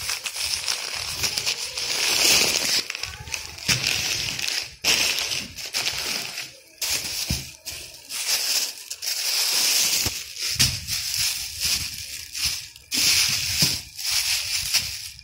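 A plastic bag crinkles and rustles as hands handle it.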